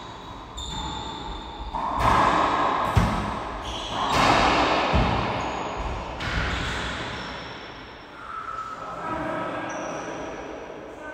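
Sounds echo loudly around a hard-walled room.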